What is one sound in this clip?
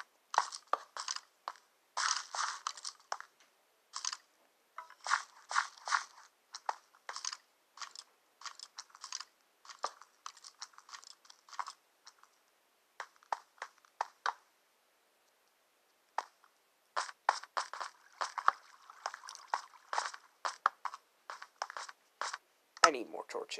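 Footsteps tap on stone in a quick, uneven rhythm.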